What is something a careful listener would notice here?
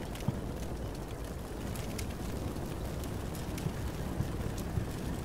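Artillery shells explode in the distance with dull, thudding booms.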